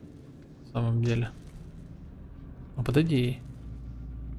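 A man speaks briefly into a headset microphone.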